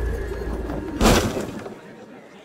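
A body lands with a soft thump in a hay cart.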